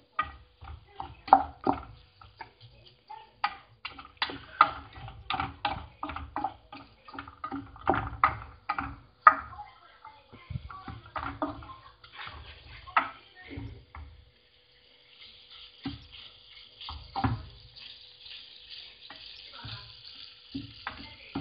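A wooden spoon scrapes and knocks against a pan while stirring rice.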